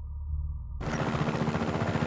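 A helicopter's rotor thumps nearby.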